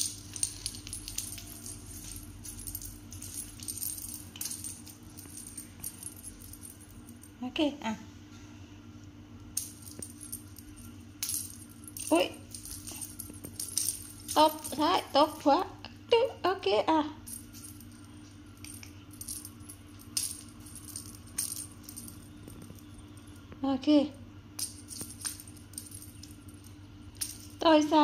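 A cat's paws patter and scuffle on a hard floor.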